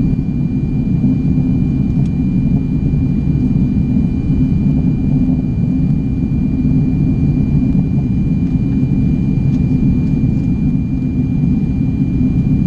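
Jet engines roar with a steady, deep rumble inside an airliner cabin.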